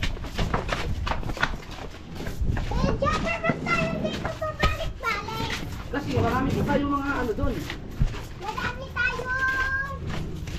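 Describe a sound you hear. Footsteps scuff along a hard, gritty path.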